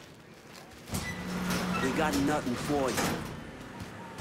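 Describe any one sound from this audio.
A metal roller door rattles as it rolls open.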